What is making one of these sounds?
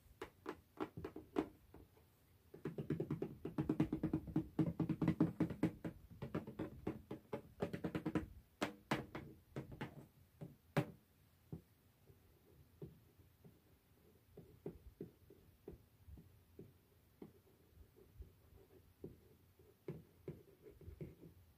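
Fingernails tap and scratch on a tin box close up.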